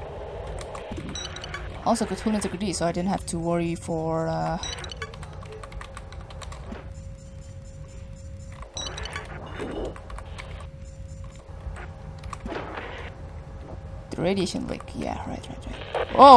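Electronic game sound effects beep and chirp.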